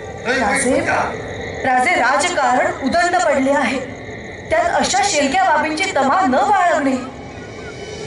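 A man declaims dramatically through loudspeakers in a large open space.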